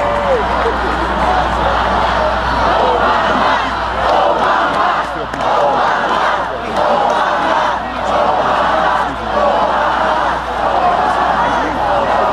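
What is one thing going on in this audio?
A man's voice speaks through loudspeakers, echoing across an open space.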